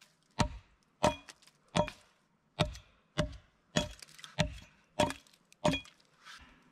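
An axe chops sharply into wood.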